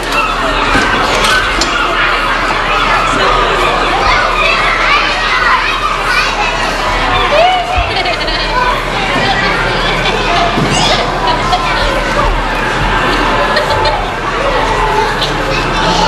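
A large audience of children chatters noisily in an echoing hall.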